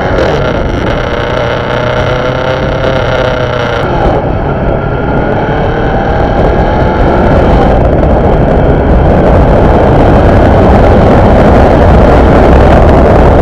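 Wind rushes loudly past while moving along a road.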